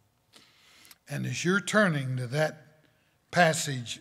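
A man speaks with emphasis through a microphone.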